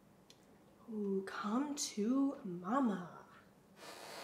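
A young woman hums softly to herself close by.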